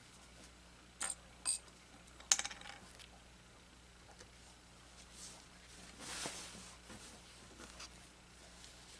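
Cloth rustles softly as hands fold and smooth it.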